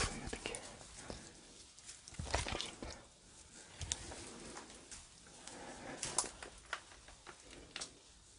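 Footsteps crunch on dry straw and debris.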